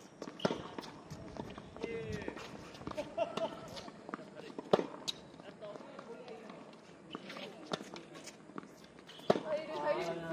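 Tennis rackets strike a ball in a rally, outdoors.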